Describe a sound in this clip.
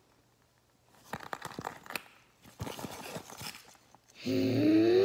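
A zipper rasps open on a small pouch.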